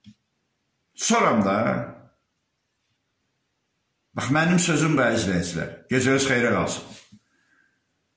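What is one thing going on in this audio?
A middle-aged man speaks with feeling, close to a microphone, in short bursts with pauses.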